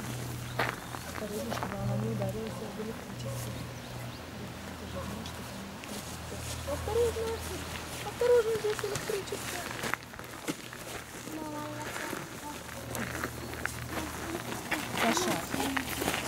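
A woman talks gently and cheerfully nearby.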